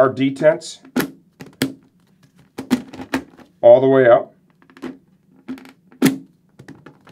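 A helmet visor clicks as it is raised and lowered.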